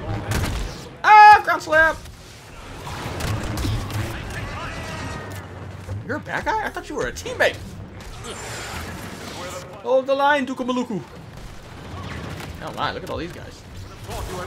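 A lightsaber hums and swishes.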